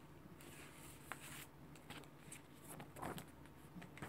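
Paper pages flutter as a booklet is handled.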